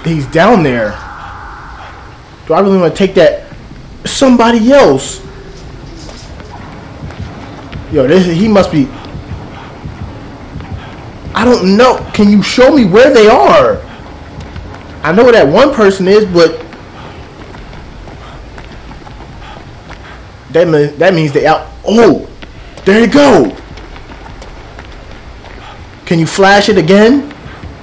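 A young man talks with animation into a headset microphone, in short bursts.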